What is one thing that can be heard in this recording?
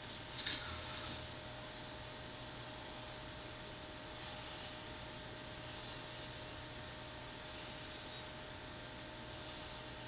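A cotton pad rubs softly against skin.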